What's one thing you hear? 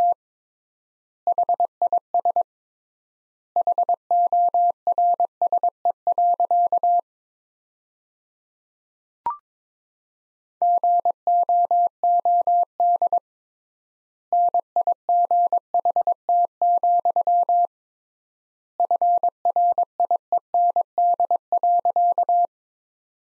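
Morse code beeps as a steady tone, in quick short and long bursts with pauses between groups.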